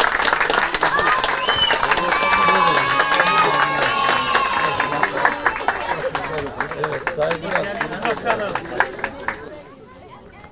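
A crowd claps and cheers loudly outdoors.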